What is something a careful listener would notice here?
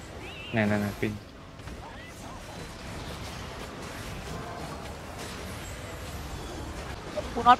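Magic spells crackle and clash in a busy battle.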